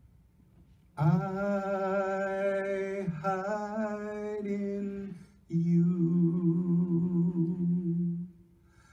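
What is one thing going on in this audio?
A man sings slow, held notes over loudspeakers in a large echoing hall.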